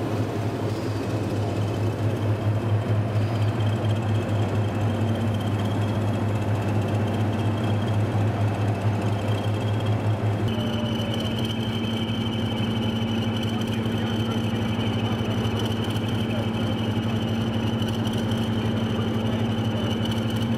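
A diesel locomotive engine idles close by with a deep, steady rumble.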